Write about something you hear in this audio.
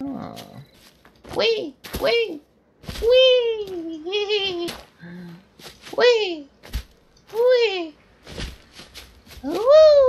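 Footsteps run quickly over leaves and dirt.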